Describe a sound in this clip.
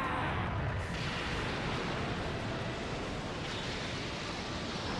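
An energy blast roars loudly.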